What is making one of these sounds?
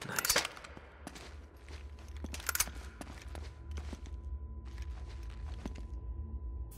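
Footsteps scuff across a stone floor.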